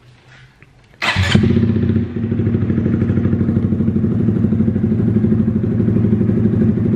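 A small motorcycle engine starts with a sudden roar and idles with a steady, throbbing rumble.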